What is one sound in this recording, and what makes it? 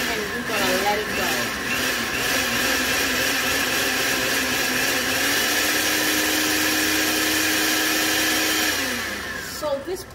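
A blender whirs loudly and steadily, then winds down.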